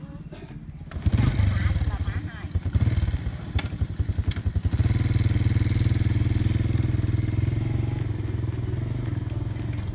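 A motorbike engine starts and runs with a low steady rumble.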